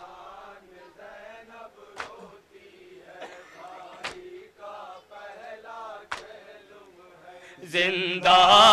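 A young man chants softly through a microphone.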